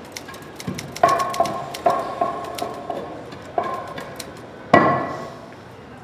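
An axe strikes a wooden block with heavy thuds.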